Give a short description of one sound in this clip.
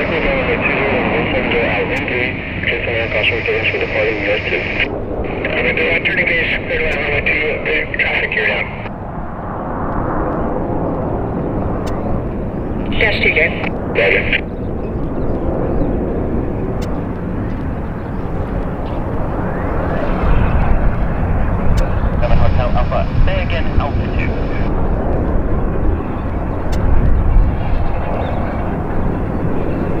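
Propeller engines roar loudly as a plane speeds along and climbs away.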